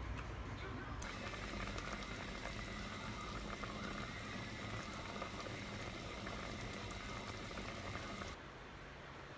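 A stew bubbles and simmers in a pot.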